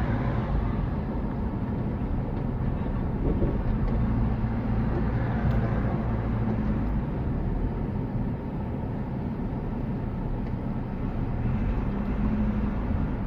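A backhoe loader's diesel engine rumbles close ahead.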